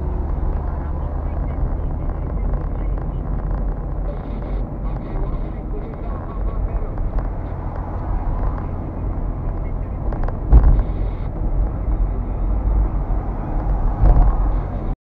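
A car's engine hums steadily from inside the cabin.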